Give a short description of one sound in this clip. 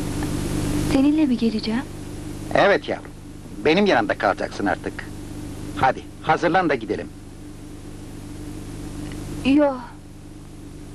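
An elderly man speaks quietly and seriously, close by.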